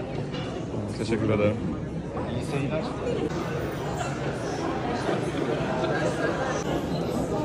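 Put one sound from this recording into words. A crowd of people chatters in a large, echoing hall.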